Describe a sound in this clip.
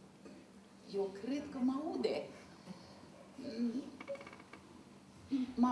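An elderly woman speaks expressively into a microphone, in short bursts.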